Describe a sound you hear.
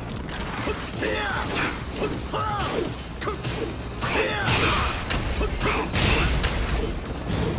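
Heavy punches and kicks land with sharp smacks.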